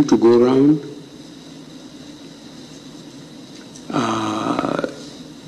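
An older man speaks calmly in short bursts.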